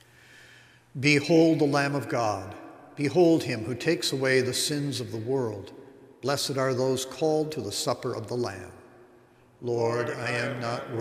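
An elderly man chants slowly into a microphone in an echoing hall.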